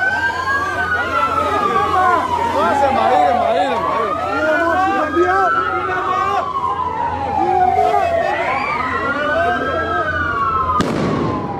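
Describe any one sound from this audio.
A crowd of men murmurs and calls out nearby, outdoors.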